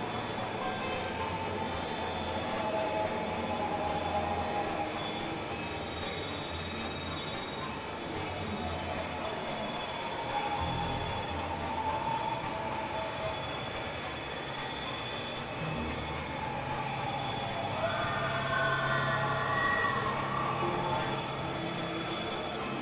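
A synthesizer plays slow, droning electronic tones.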